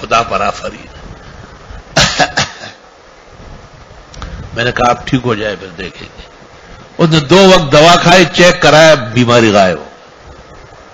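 An elderly man speaks calmly, with pauses.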